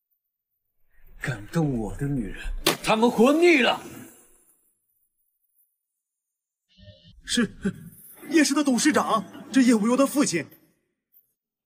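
A young man speaks tensely and close by.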